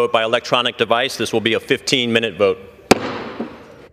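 A man speaks formally into a microphone in a large echoing hall.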